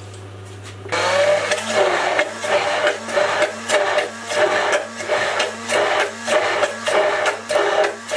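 A hand blender whirs in bursts, blending in a glass.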